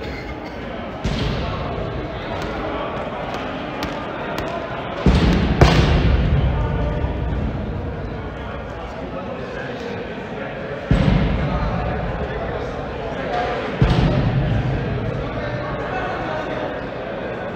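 Balls thump hard in a large echoing hall, each boom ringing out slowly.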